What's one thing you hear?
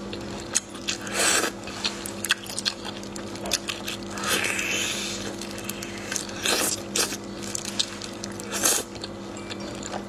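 A woman slurps and sucks at shellfish.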